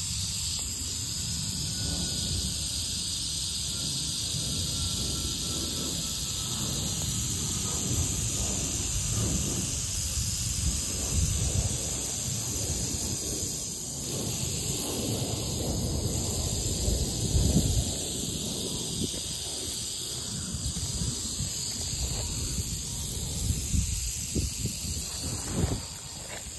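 Rattlesnakes rattle with a steady, dry buzz close by.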